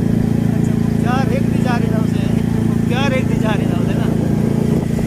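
A man speaks loudly and with animation over the engine.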